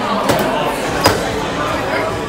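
A door bangs open with a metal latch click.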